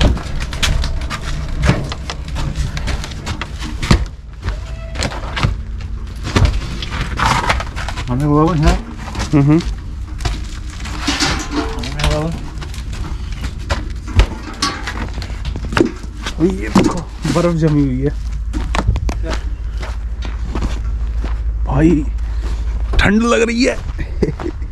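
Footsteps crunch on snowy ground.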